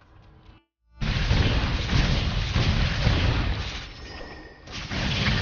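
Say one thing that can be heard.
A magical energy burst whooshes and crackles loudly.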